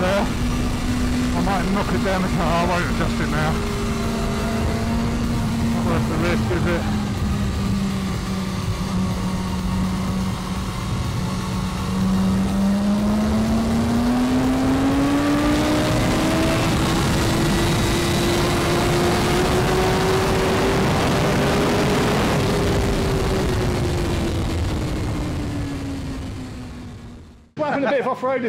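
A motorcycle engine roars at speed, climbing in pitch as it accelerates and then fading away.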